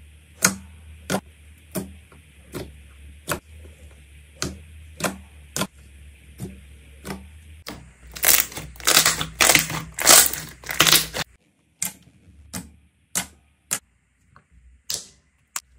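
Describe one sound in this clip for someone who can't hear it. Fingers poke into thick slime with sharp, wet pops.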